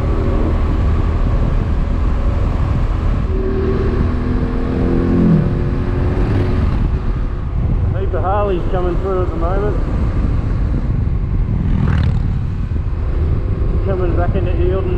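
A motorcycle engine drones steadily, with its pitch dropping as it slows.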